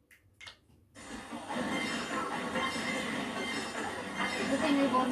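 Racing game music and engine sounds play loudly from a television.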